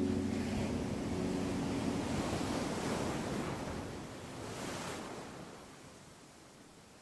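Waves wash onto the shore and fizz as they recede, slowly fading.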